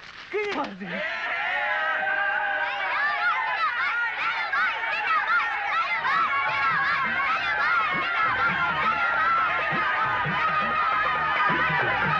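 A crowd of boys shouts and cheers outdoors.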